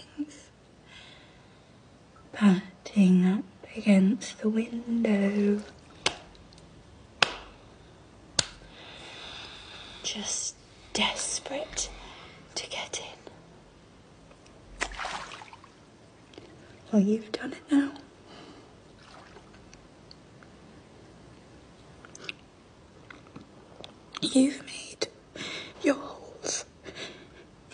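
A young woman sobs and speaks in a choked voice close by.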